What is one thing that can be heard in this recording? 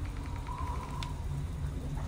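A game menu gives a single sharp click.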